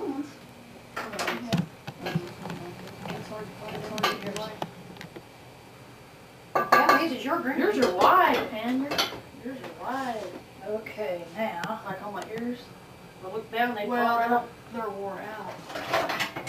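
Two women talk and laugh close by.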